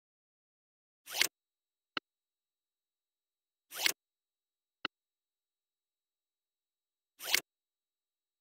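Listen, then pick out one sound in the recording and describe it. A short swoosh sounds now and then.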